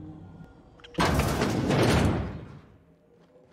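A door slides open with a loud whoosh.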